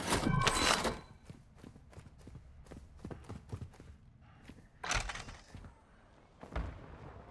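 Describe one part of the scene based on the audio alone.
Footsteps patter quickly across a hard floor.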